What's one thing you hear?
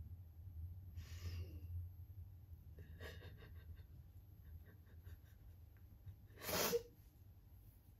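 A young woman sobs and sniffles quietly.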